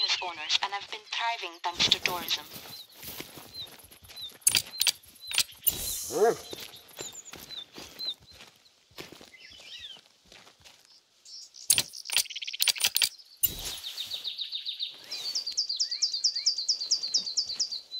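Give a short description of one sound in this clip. A dog pants nearby.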